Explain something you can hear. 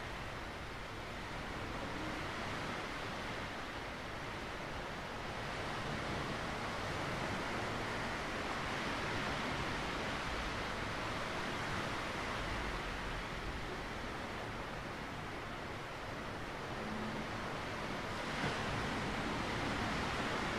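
Waves wash steadily over a rocky shore.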